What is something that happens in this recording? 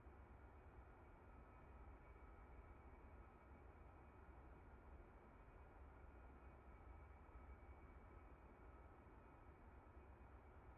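A jet engine hums and rumbles steadily from inside a cockpit.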